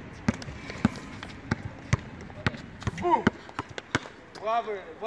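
A basketball bounces repeatedly on an outdoor court.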